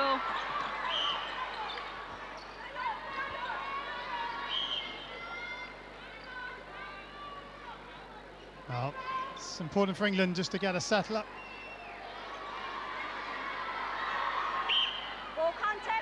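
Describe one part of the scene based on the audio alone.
A referee's whistle blows in short blasts.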